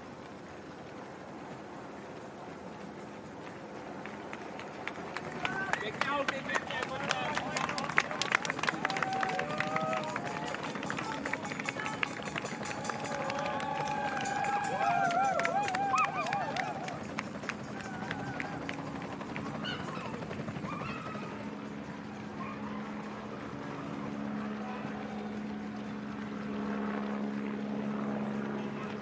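Runners' footsteps patter on a paved road.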